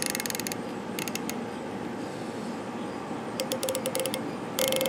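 A rifle scope turret clicks as it is adjusted.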